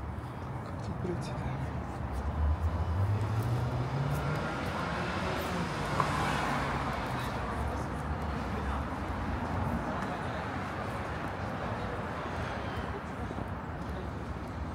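Traffic rumbles steadily on a nearby street.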